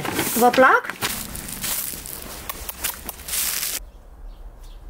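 A plastic bag rustles as a hand rummages inside it.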